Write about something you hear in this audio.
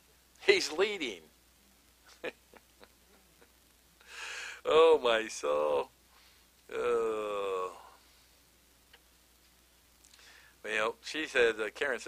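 An older man speaks into a microphone with pauses between phrases.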